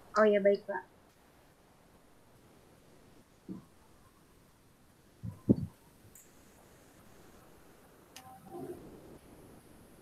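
A young woman speaks softly through an online call.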